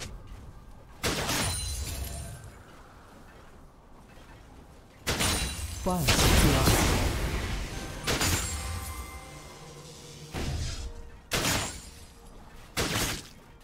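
Fantasy combat sounds clash and thud in short bursts.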